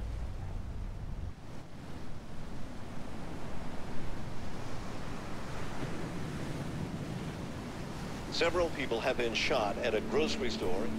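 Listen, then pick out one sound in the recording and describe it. Waves wash onto a rocky shore.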